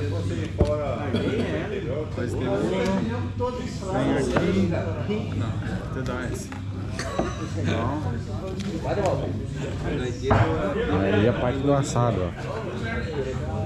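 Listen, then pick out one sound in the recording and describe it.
Several men talk loudly over one another, close by.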